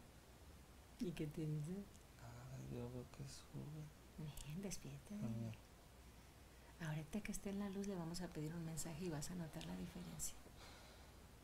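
A woman speaks softly and playfully close by.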